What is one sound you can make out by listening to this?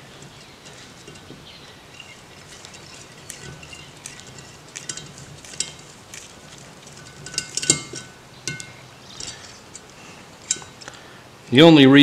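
A small metal tool clicks and taps on a metal carburetor body.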